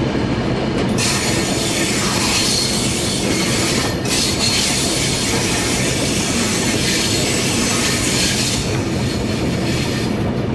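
Rain patters on a train's windscreen.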